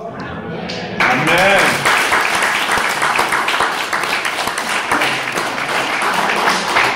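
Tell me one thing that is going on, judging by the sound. Several women applaud with quick, steady clapping.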